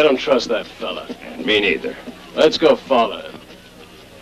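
Two men talk briefly in low voices, close by.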